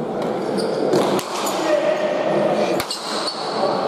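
A hard ball smacks against a wall and echoes through a large hall.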